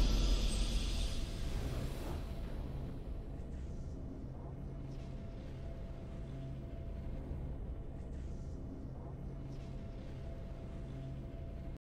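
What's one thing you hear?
A burst of triumphant game music sounds.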